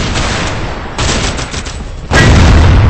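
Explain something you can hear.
A pump shotgun fires in a video game.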